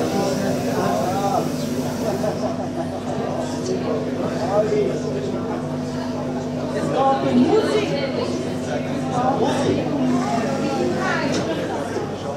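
A band plays music loudly in a hall.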